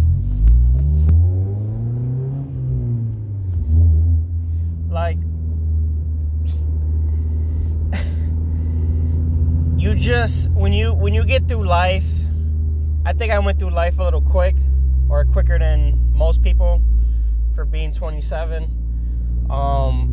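A car engine hums steadily, with a brief rise and fall in pitch near the start.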